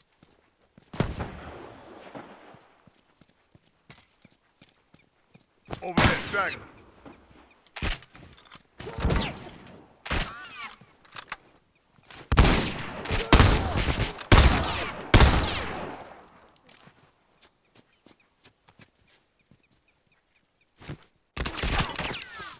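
Loud rifle shots ring out and echo.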